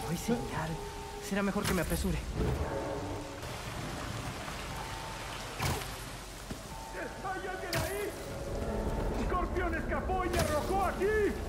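Water rushes and splashes loudly.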